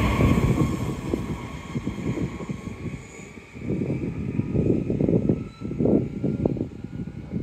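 A train's electric motor whines and slowly fades as it moves away.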